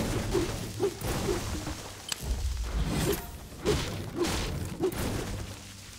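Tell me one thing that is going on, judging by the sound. A pickaxe strikes rock with repeated sharp knocks.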